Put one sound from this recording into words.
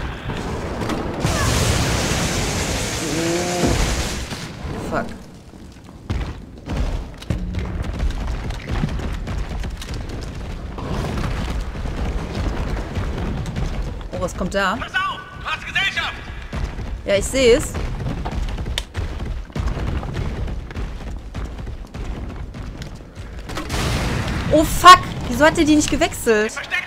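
A grenade explodes in a burst of fire.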